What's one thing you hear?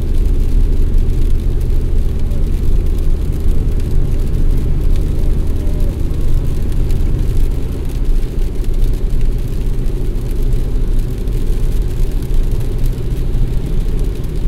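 Windshield wipers swish across the glass.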